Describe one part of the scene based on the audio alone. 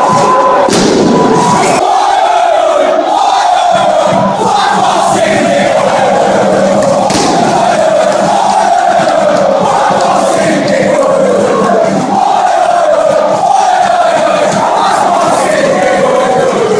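A large crowd chants loudly and in unison in a big open stadium.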